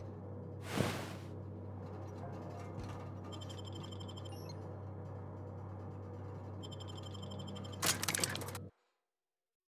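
A lift machine hums low and steady.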